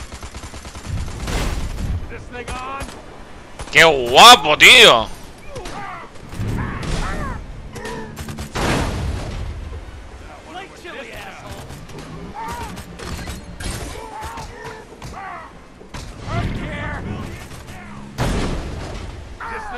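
Explosions boom and burst into flames.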